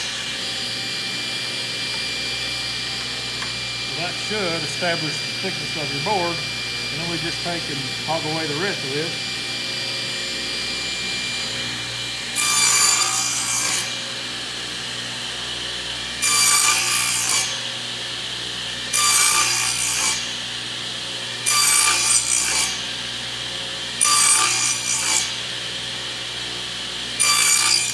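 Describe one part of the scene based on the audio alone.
A table saw motor hums steadily.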